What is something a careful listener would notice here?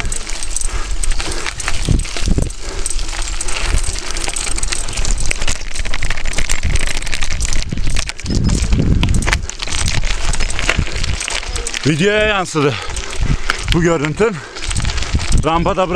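Bicycle tyres crunch over loose gravel.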